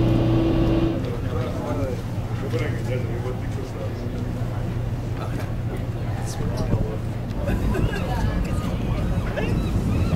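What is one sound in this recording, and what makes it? People chatter in the distance.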